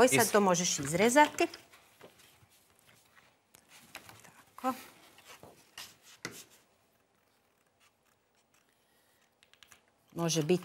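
A woman speaks clearly and calmly through a microphone.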